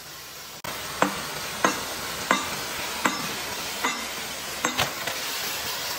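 A sledgehammer strikes metal with sharp, ringing blows.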